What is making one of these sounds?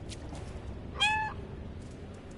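A cat meows once, close by.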